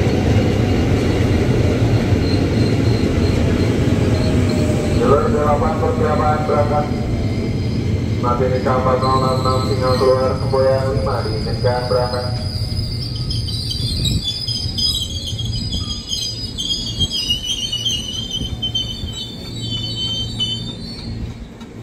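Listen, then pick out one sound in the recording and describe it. An electric train rumbles and clatters along the rails close by.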